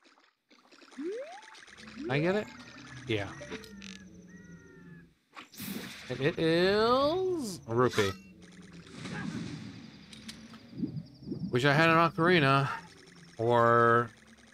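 Water splashes as a figure jumps in.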